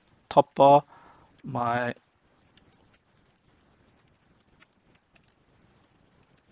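Keyboard keys click softly as someone types.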